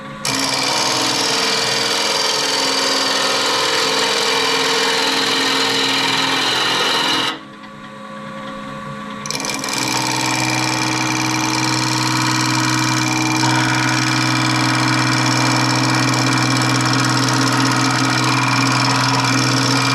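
A chisel scrapes and shaves against spinning wood.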